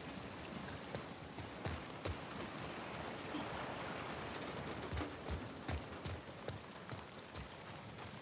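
Footsteps thud on the ground as a person runs.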